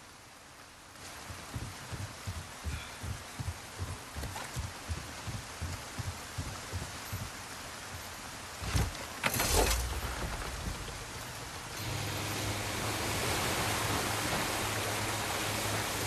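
Rain falls steadily on water and wood.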